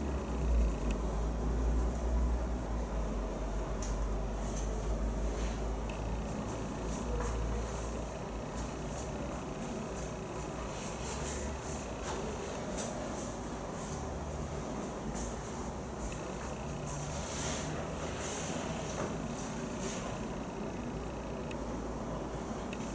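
A young man speaks calmly to a room.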